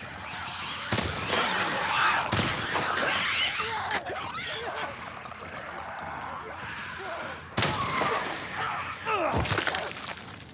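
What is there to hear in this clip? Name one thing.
Shotguns fire loud blasts in bursts.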